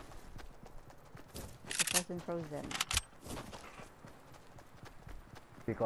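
Footsteps patter quickly on grass and pavement.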